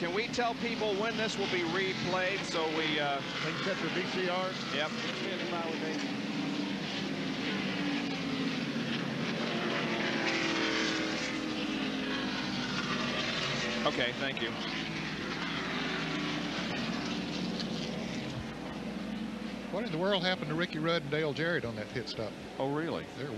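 A pack of race car engines roars loudly and steadily.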